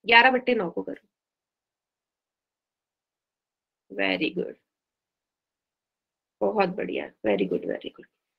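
A young woman speaks calmly in short phrases over an online call.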